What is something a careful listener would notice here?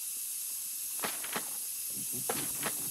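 Small footsteps rustle over scattered paper.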